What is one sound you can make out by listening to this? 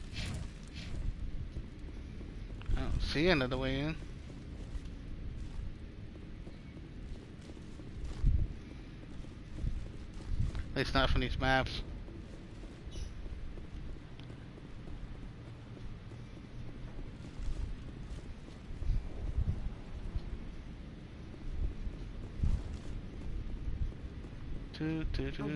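Heavy footsteps thud over rough ground.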